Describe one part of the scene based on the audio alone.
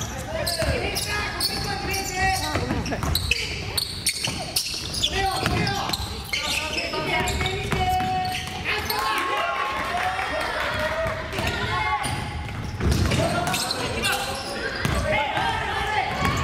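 A basketball bounces on a wooden floor with echoing thumps.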